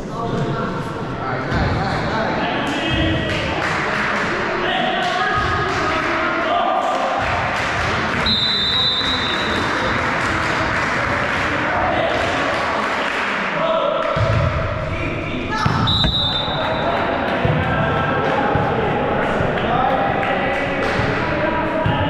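A crowd of young people talks and shouts throughout a large echoing gym.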